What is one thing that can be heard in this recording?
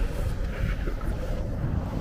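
Wheels roll and rumble on rough pavement.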